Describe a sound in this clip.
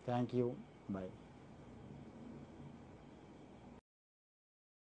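A man speaks calmly and close up through a clip-on microphone.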